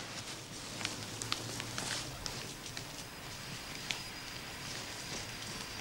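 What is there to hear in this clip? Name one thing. Footsteps walk away on a path outdoors.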